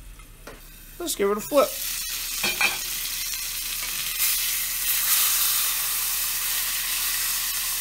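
Meat sizzles loudly in hot oil.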